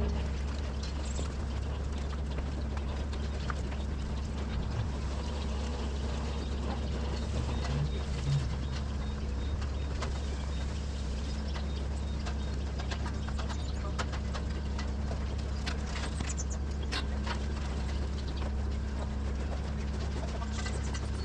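A steady low mechanical hum fills a large barn.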